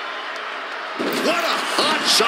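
A body thuds onto the floor outside the ring.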